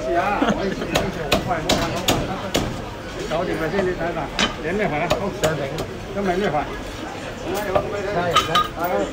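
A heavy cleaver chops sharply on a wooden block.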